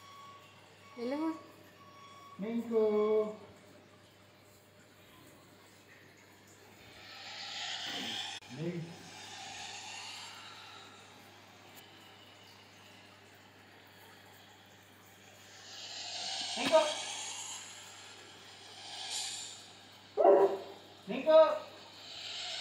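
A large dog barks and whines at a door, close by.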